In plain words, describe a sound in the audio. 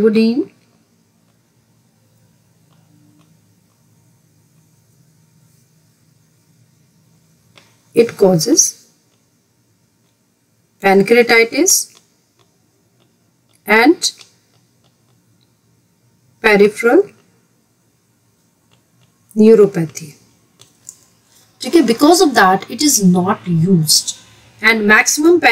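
A woman speaks calmly in short phrases, heard close through a microphone.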